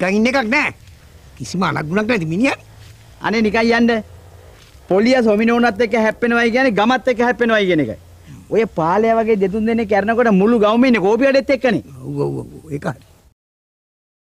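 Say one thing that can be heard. A second man answers in a firm voice.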